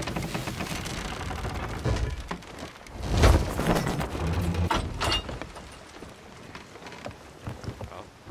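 Waves wash and splash against a wooden boat.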